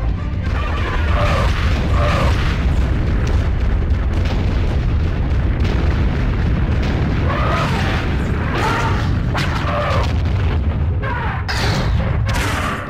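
Giant monsters screech and growl as they fight.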